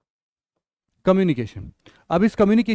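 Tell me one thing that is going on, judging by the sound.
A man speaks clearly into a close microphone, in a lecturing tone.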